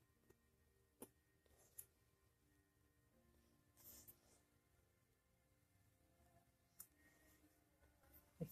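Scissors snip quietly through a soft pad.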